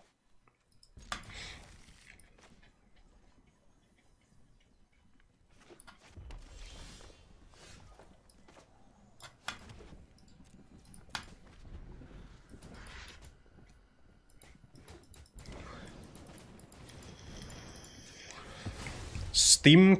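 Game cards click and chime softly as they are played.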